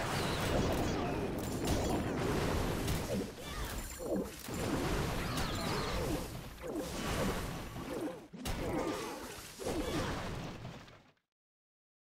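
Video game battle noises clatter and crash as buildings are destroyed.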